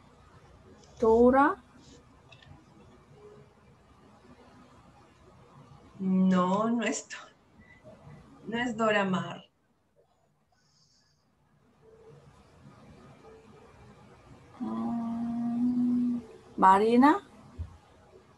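A woman speaks in short phrases over an online call.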